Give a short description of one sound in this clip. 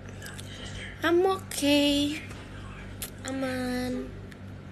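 A young woman speaks close to a phone microphone in a high, sing-song voice.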